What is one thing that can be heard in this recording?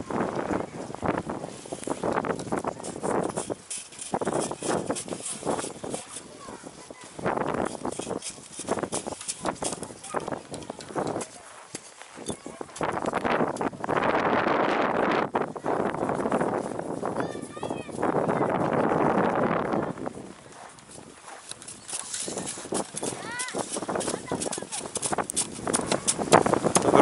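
Children shovel and pat snow at a distance.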